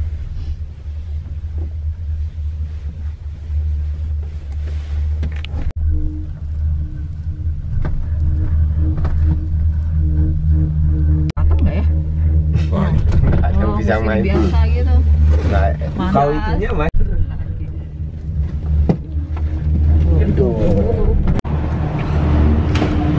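A gondola cabin hums steadily as it rides along a cable.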